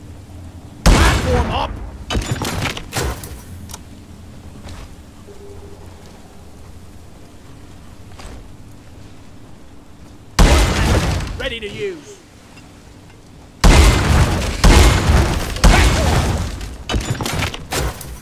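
A heavy rapid-fire gun blasts in loud bursts.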